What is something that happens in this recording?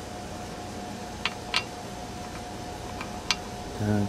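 Metal tool parts clink lightly against each other.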